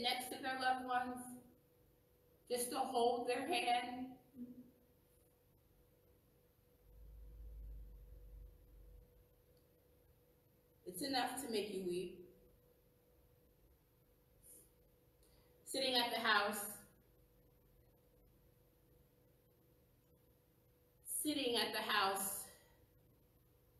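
A woman speaks slowly and calmly in short phrases, in a room with a light echo.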